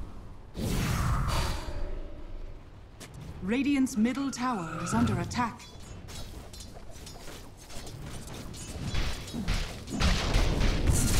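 Magic spells whoosh and burst during a fight.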